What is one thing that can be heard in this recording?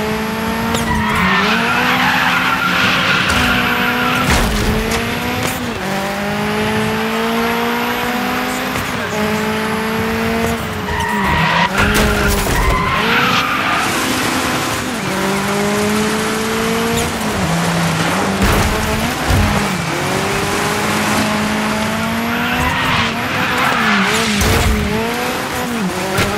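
Tyres screech as a rally car skids on asphalt.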